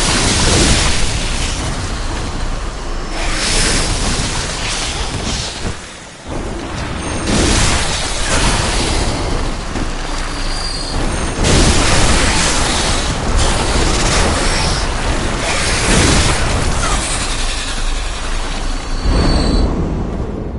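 Heavy blade swings slash and strike hard, again and again.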